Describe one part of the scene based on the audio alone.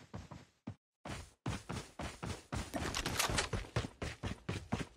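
Footsteps crunch through grass at a quick, steady pace.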